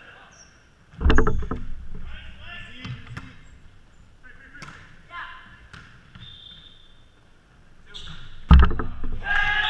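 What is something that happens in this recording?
A volleyball is struck with loud slaps in a large echoing gym.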